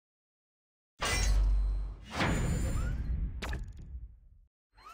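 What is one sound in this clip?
A bright fanfare swells as an upgrade completes.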